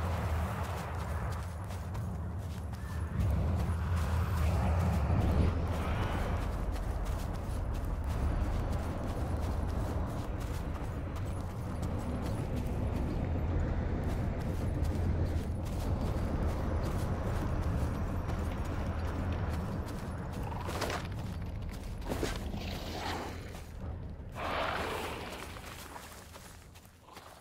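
Footsteps swish steadily through grass.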